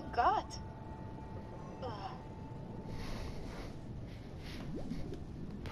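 Air bubbles gurgle and burble from a diver's breathing gear.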